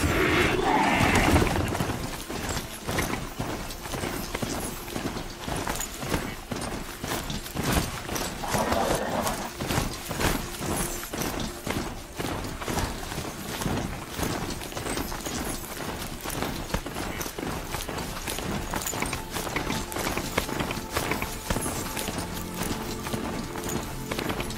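Heavy mechanical footsteps of a robotic mount thud and clank steadily.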